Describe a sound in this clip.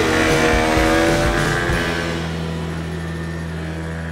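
A motor scooter engine hums and pulls away, fading into the distance.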